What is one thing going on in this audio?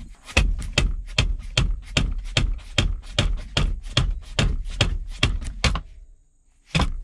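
A metal tool clicks rapidly and evenly.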